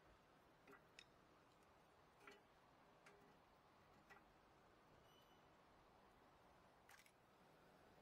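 A wrench clinks and scrapes against metal parts.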